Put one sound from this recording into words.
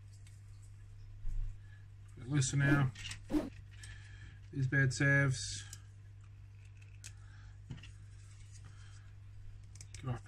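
Plastic parts click and tap together as hands handle them.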